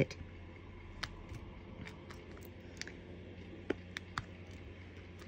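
Small beads click faintly against a plastic tray.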